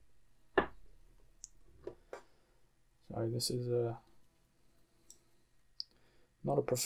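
Small plastic connectors click and snap.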